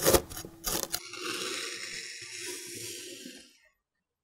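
A metal scoop hisses softly through fine sand.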